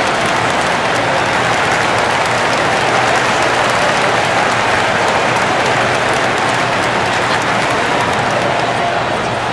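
A large arena crowd murmurs and cheers steadily in a big echoing hall.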